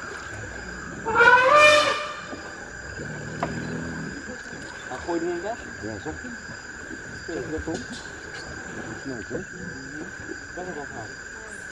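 River water sloshes around wading elephants.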